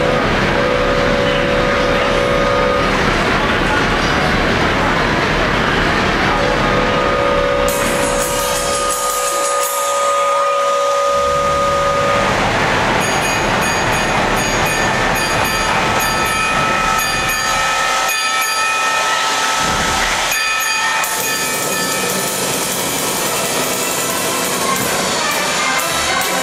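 A theatre pipe organ plays loud, full music that fills a large hall.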